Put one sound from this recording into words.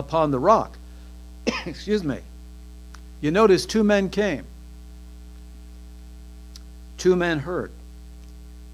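A middle-aged man preaches with emphasis through a microphone, in an echoing hall, pausing between phrases.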